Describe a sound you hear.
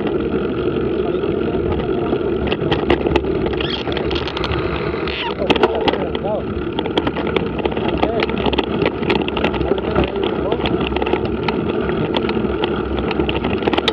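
Tyres crunch and rattle over a gravel track.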